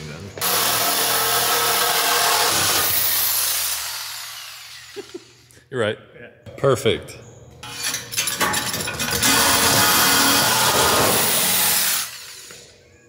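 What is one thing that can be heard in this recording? A power saw cuts loudly through metal.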